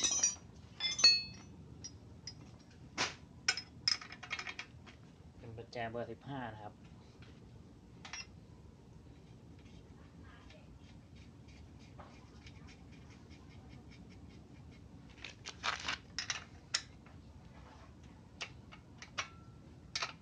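Metal tools clink together.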